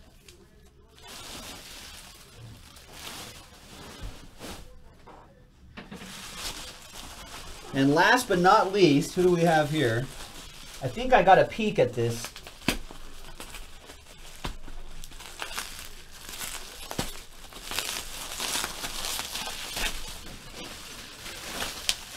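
Bubble wrap crinkles and rustles as it is handled.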